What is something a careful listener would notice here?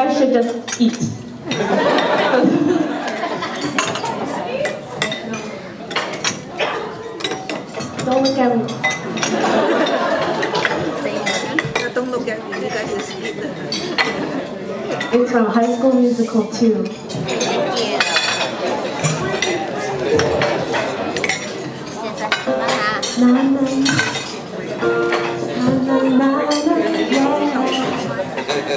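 A young woman speaks with animation into a microphone over loudspeakers in a large hall.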